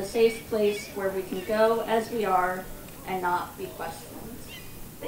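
A young woman speaks into a microphone, heard through a loudspeaker.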